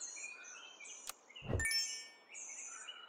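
A sparkling chime rings out in a game.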